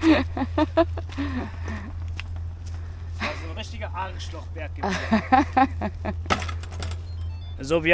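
A hand trolley rattles as it rolls over paving stones.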